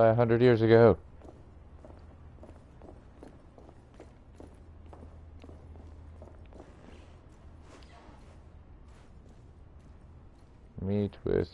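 Footsteps tap softly.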